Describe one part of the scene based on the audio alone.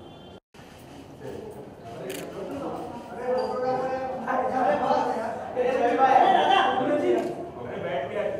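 A crowd of men talk and call out loudly nearby.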